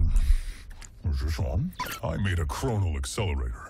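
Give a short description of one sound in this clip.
A deep male voice speaks calmly and close.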